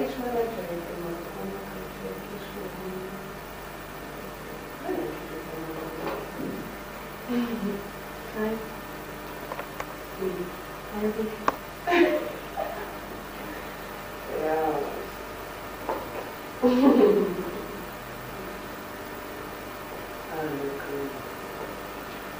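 A young woman speaks with expression, heard from across a room.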